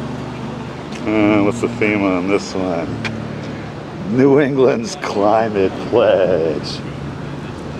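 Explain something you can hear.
A man speaks close by in a lively voice.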